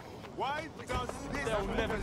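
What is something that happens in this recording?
Footsteps run quickly across hard ground.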